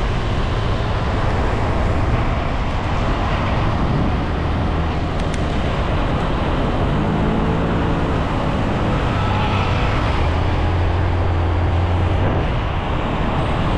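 Nearby scooters whine past in traffic.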